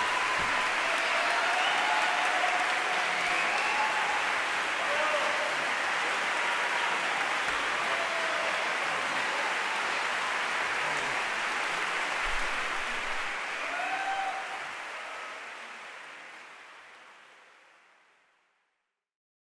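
An audience applauds loudly in a large echoing hall, then the applause fades away.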